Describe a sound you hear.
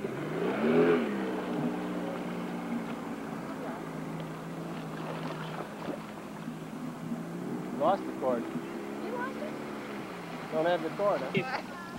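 Water splashes as a child kicks skis in a lake.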